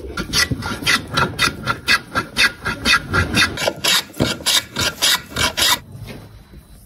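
A hand plane shaves wood in rapid strokes.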